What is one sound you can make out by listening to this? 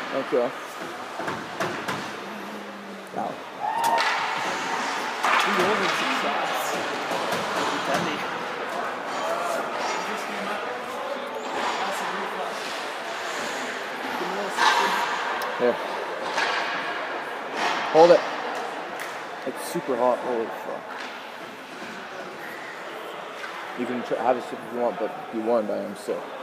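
Skates scrape and hiss on the ice in a large echoing rink.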